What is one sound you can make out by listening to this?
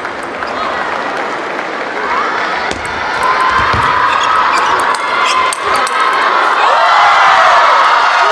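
A table tennis ball clicks rapidly back and forth on paddles and the table.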